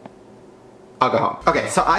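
A young man speaks loudly and excitedly close to a microphone.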